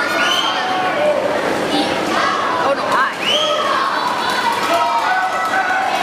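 A swimmer splashes through the water with strong strokes.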